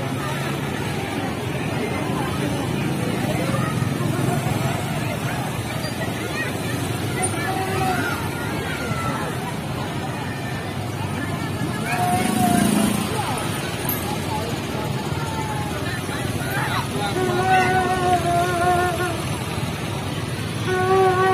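A crowd of people chatters along the roadside outdoors.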